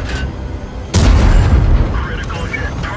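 A shell explodes with a loud bang.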